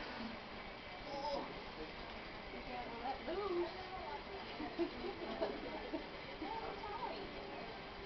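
A woman speaks softly and warmly nearby.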